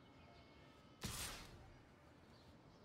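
A sharp whooshing game sound effect bursts out and quickly fades.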